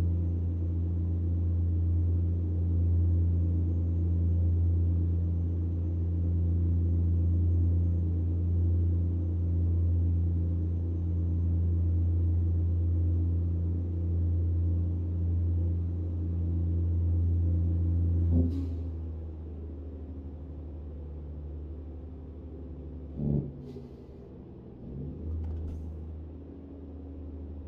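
A truck engine drones steadily, then eases off and quietens.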